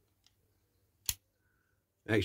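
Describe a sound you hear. A plastic roof panel clicks onto a diecast model car.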